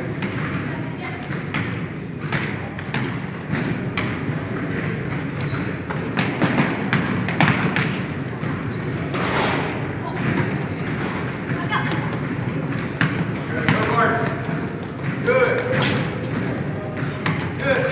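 Boys shout and call out to each other across the echoing hall.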